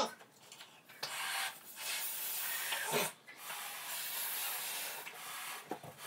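A young woman blows up a rubber balloon by mouth.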